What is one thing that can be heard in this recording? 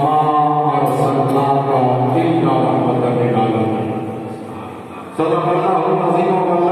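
An elderly man chants in a long, drawn-out voice through a microphone and loudspeakers in an echoing hall.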